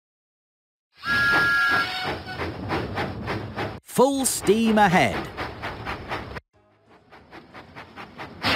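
A steam engine chuffs steadily along the rails.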